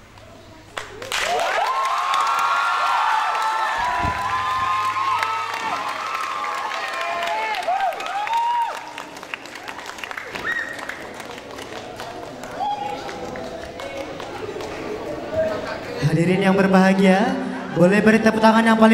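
A group of young performers chant and shout loudly together in a large echoing hall.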